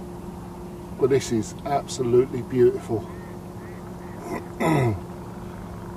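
A middle-aged man speaks calmly close by, outdoors.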